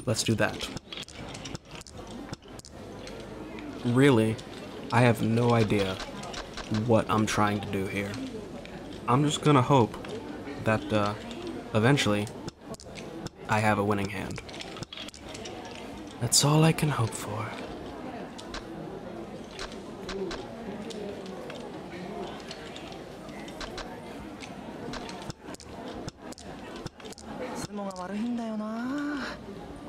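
Mahjong tiles clack as they are laid down.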